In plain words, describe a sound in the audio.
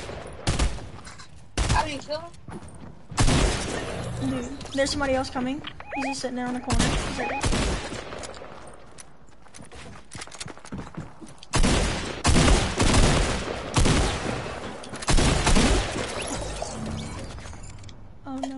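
Gunshots crack and bang in quick bursts.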